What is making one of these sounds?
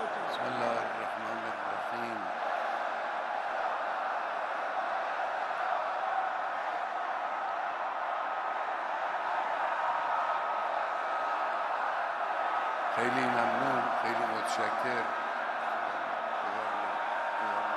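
A large crowd murmurs in a big echoing space.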